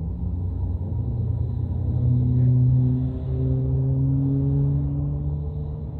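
A vehicle engine drones louder and rises in pitch as it speeds up.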